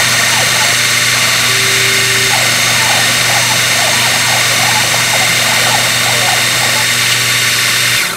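A small milling spindle whirs steadily.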